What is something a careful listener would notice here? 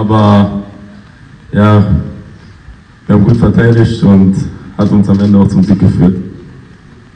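A middle-aged man speaks through a microphone over loudspeakers in a large echoing hall.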